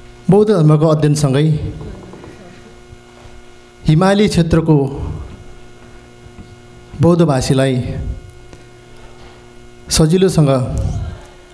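A man speaks in short phrases through a microphone and loudspeaker, in a room that echoes.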